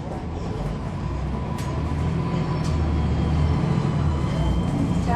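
A bus engine rumbles loudly close by, growing louder.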